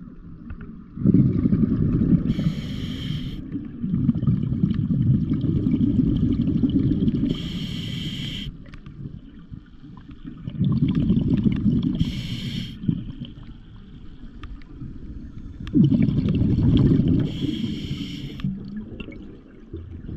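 Bubbles rush and rumble loudly as a diver breathes out underwater.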